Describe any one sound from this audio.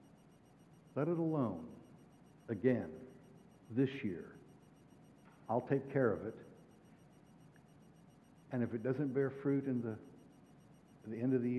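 An elderly man speaks with expression through a microphone, in short phrases with pauses, in a large echoing room.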